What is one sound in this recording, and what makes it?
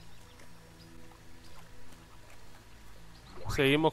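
Water splashes softly as a small figure wades through it.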